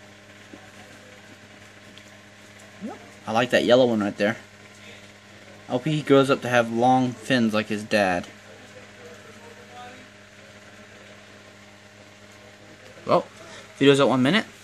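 An aquarium filter hums steadily and quietly.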